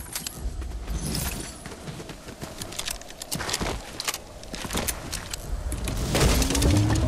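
Footsteps patter quickly on dirt in a video game.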